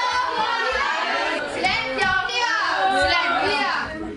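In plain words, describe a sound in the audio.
A young woman speaks up loudly.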